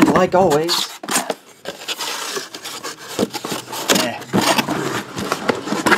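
Cardboard flaps scrape and thud as a box is opened.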